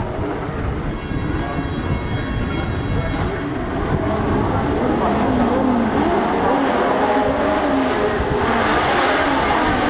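Racing car engines idle and rev on a grid.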